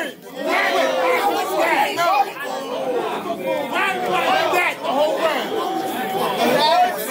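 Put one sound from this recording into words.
A crowd of men murmurs and talks in the background.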